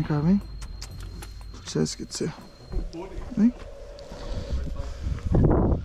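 Metal bridle buckles clink softly.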